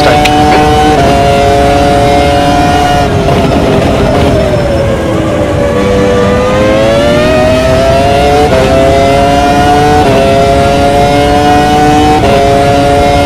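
Gears shift with sharp jolts in the engine note.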